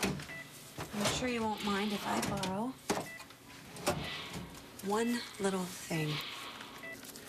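A young woman speaks softly and urgently nearby.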